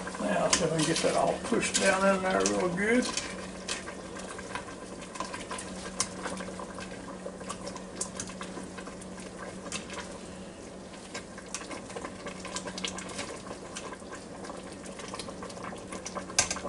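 A spatula scrapes and knocks against the inside of a pot.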